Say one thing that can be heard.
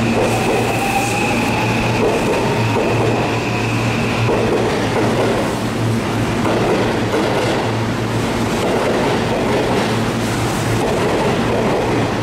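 A train's wheels clatter along the rails as it pulls away and speeds up.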